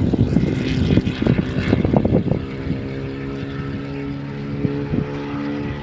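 A racing car engine roars in the distance, revving up and down as it speeds along a track.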